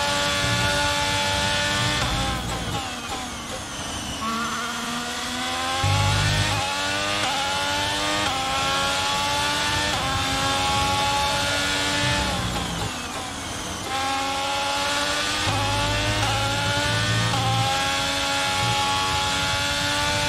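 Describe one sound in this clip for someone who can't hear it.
A racing car engine screams at high revs, dropping in pitch on braking and rising again through the gears.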